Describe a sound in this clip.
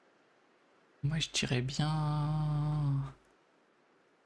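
A soft, pitched chime rings out and then stops.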